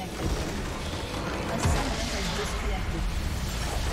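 A structure blows up with a loud crashing blast.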